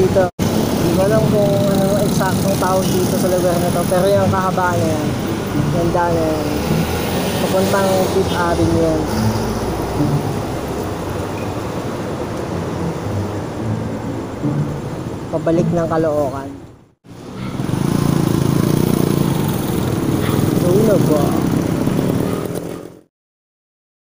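Traffic rumbles past on a street at night.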